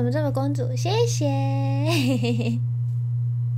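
A young woman laughs into a microphone.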